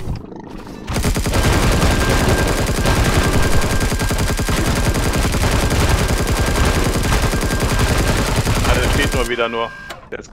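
Gunshots fire in a rapid, steady burst.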